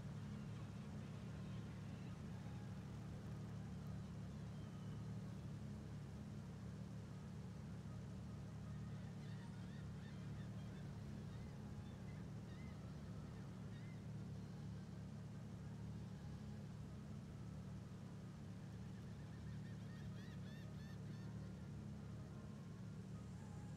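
A sports car engine idles with a steady low rumble.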